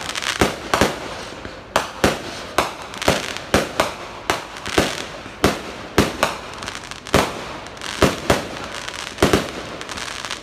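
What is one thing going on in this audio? Fireworks burst with sharp, echoing bangs in quick succession.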